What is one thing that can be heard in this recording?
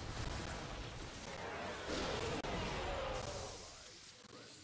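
Energy blasts crackle and burst in a loud battle.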